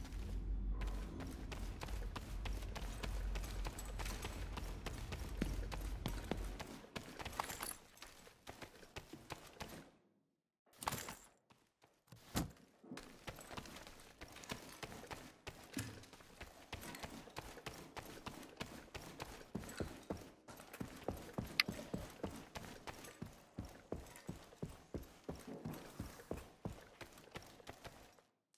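Footsteps hurry across a hard floor and up stairs.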